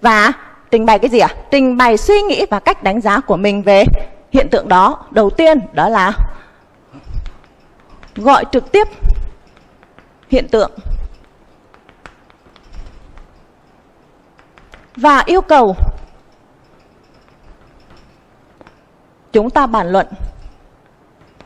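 A woman speaks clearly and calmly into a microphone, pausing often.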